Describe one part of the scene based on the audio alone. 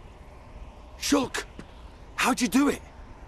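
A young man shouts out.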